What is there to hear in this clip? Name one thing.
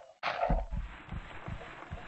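Dirt blocks crunch as they are dug out, in quick repeated scrapes.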